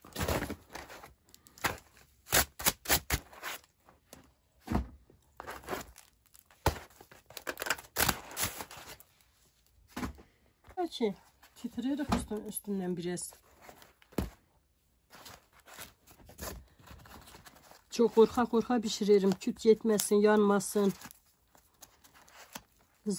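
Crisp flatbread crackles and rustles as hands handle and fold it.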